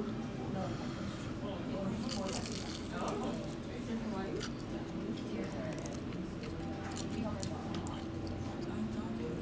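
A man talks casually between bites, close by.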